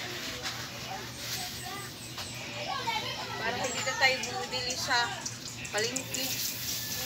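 A middle-aged woman talks close by, outdoors.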